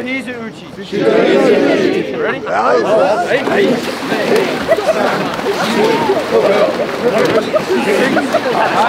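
Water splashes loudly as many people thrash in it.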